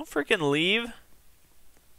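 A teenage boy exclaims loudly and excitedly, close to a microphone.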